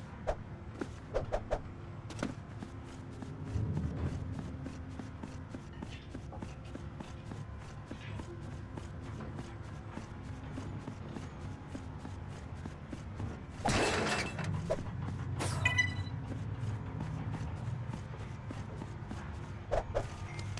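Quick light footsteps patter on a hard floor.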